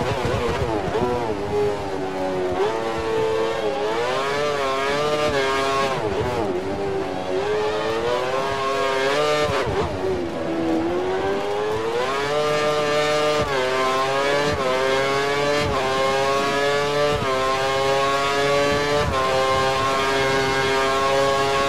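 A racing car engine screams at high revs, rising through the gears and dropping as it slows for corners.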